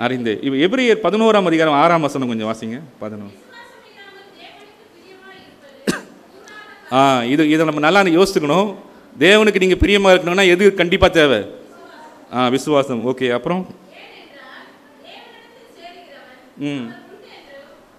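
A man speaks with emphasis through a microphone and loudspeakers in an echoing hall.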